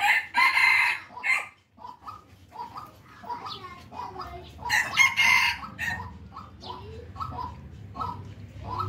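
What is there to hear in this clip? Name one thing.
Puppies whine and yelp loudly.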